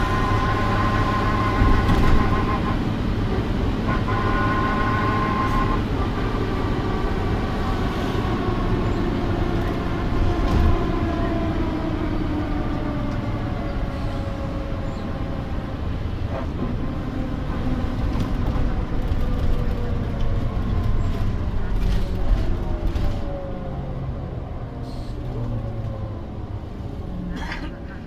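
The bus body rattles and creaks over the road.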